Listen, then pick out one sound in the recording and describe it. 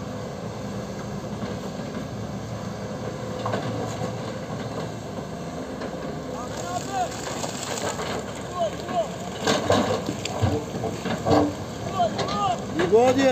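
Excavator engines rumble steadily.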